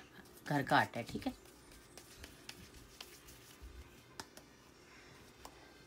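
Hands softly pat and roll a ball of dough.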